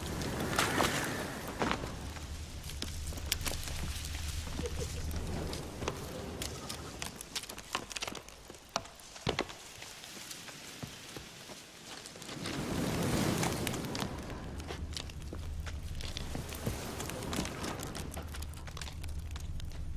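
Footsteps crunch quickly on dirt and dry grass.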